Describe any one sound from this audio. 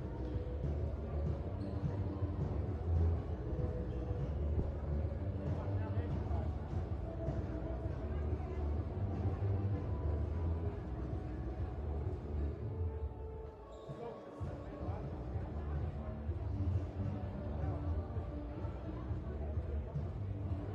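Shoes squeak on a hard indoor court, echoing in a large hall.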